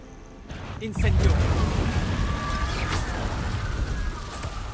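Fire spells burst and roar with loud crackling blasts.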